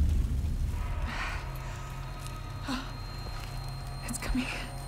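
A young woman breathes heavily in pain.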